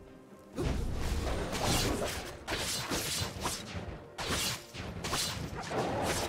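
Game spell effects crackle and burst in quick succession during a fight.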